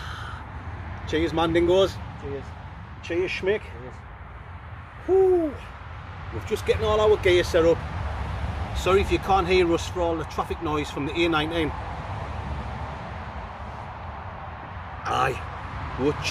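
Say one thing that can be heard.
A middle-aged man speaks cheerfully close by.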